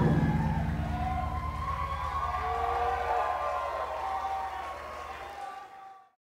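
A crowd whistles in a large echoing hall.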